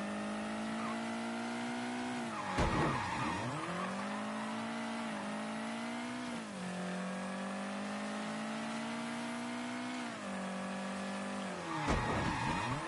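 A car engine roars steadily, its pitch dropping at each gear change.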